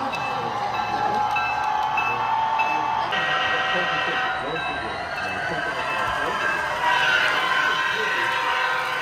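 A model train rumbles and clicks along its track.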